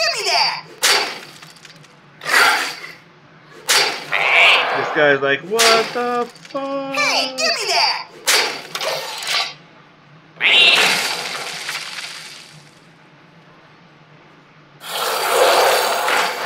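Digital game sound effects whoosh, chime and crash in bursts.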